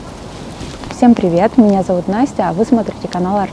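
A young woman speaks calmly and close by, outdoors.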